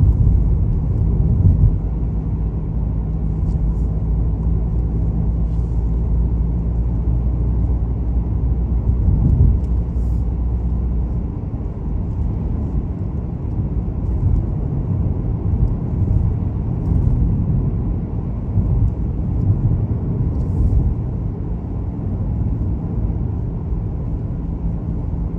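A car's engine hums steadily, heard from inside the car.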